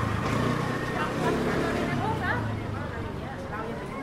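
A motor scooter putters past.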